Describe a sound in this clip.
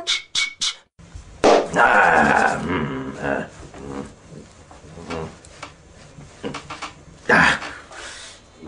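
A foil tray crinkles and rustles as hands handle it.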